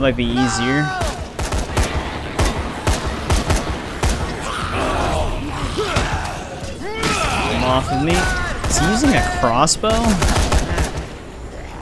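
Guns fire rapid bursts of shots.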